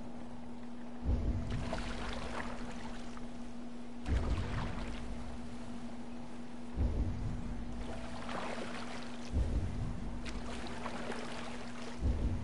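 Oars splash through water in slow, regular strokes.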